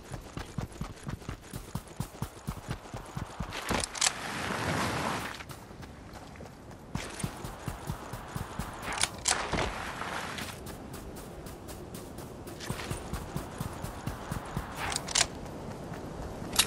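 Quick footsteps run steadily on a hard road.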